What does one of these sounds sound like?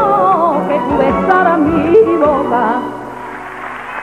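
A woman sings loudly into a microphone.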